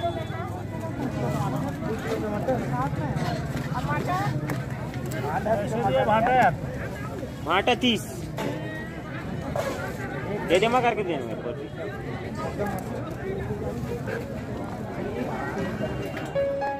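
Several men talk and call out over one another nearby, outdoors.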